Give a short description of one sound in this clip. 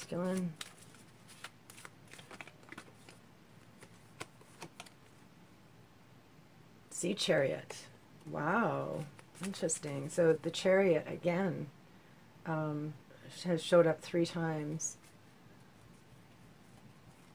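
Playing cards slap and rustle as they are handled.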